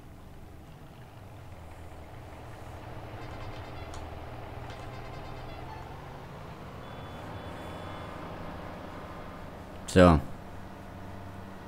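A diesel tractor approaches and passes with a rising drone.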